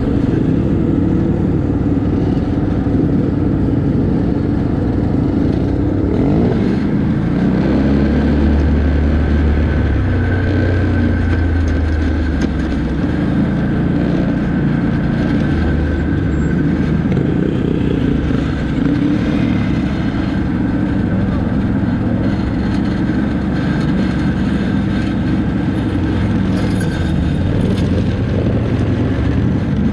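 Quad bike engines rumble and whine close by.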